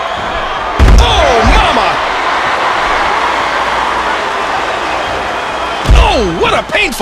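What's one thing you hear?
A heavy body slams onto a wrestling ring mat with a loud thud.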